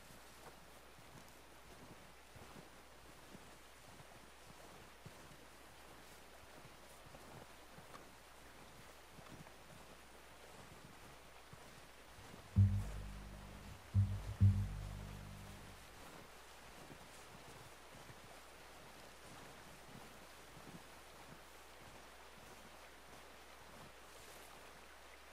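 Footsteps crunch slowly through deep snow.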